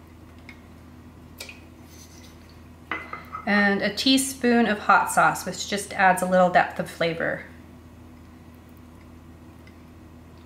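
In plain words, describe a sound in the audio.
A spatula scrapes inside a metal pot.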